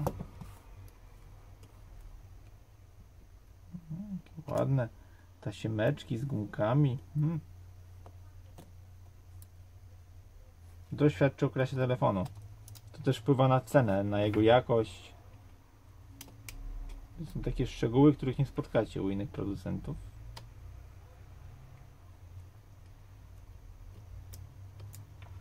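A metal pry tool scrapes and clicks against a phone's edge.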